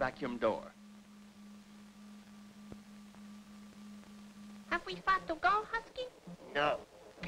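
A man speaks with animation, in short bursts.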